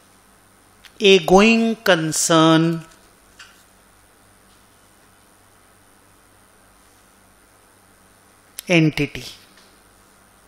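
A middle-aged man speaks calmly into a close microphone, in short bursts with long pauses.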